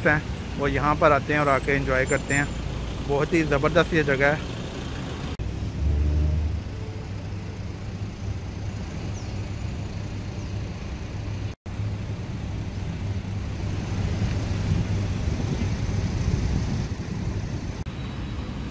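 Car engines idle and rumble in slow street traffic.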